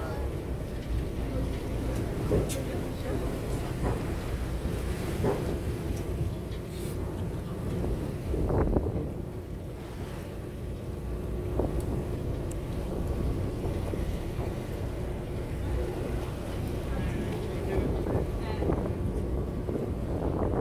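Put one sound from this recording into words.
Wind blows over open water, buffeting loudly.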